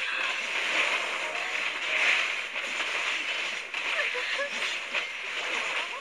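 Game battle effects crackle, whoosh and clash continuously.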